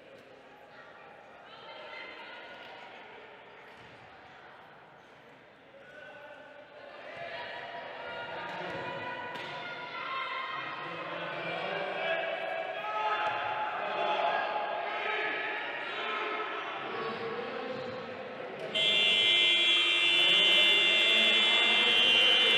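A crowd cheers and shouts in a large echoing hall, growing louder.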